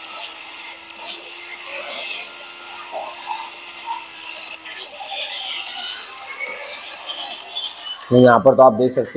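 A racing game roars with engine noise and music from a small phone speaker.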